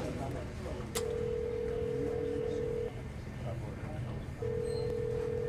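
A phone line gives a steady ringing tone through a handset.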